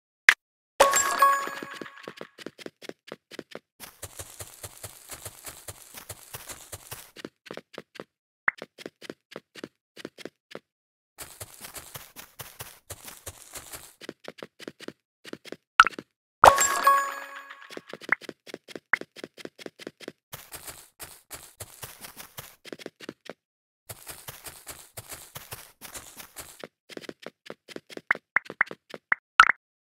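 Quick footsteps patter steadily as a game character runs.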